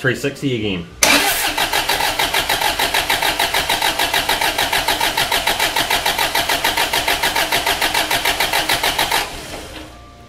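An engine cranks over rapidly with a steady, rhythmic churning.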